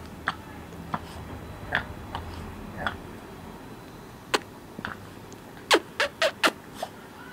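A small dog yips and barks in short, sharp bursts close by.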